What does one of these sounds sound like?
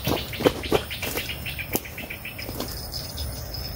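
Dry reeds crackle and snap underfoot.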